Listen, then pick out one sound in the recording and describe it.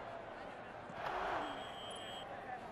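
Football players' pads collide in a tackle.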